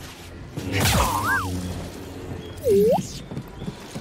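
A small robot chirps and warbles in rising beeps.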